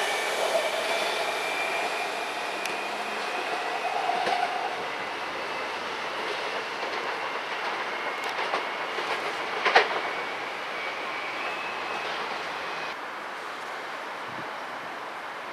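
A second train approaches in the distance.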